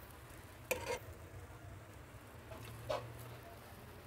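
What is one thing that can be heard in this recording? A metal bowl clinks against a steel pot.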